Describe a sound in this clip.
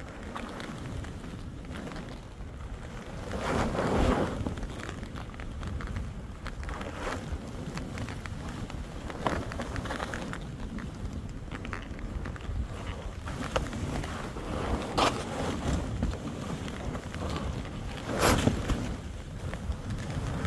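Skis hiss and scrape through soft snow.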